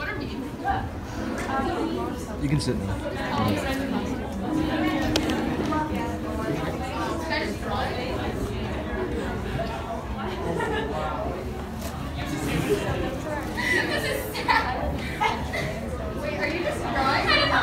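A crowd of young people laughs and chatters.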